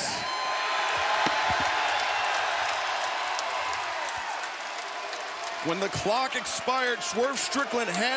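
A large crowd cheers loudly in a big echoing arena.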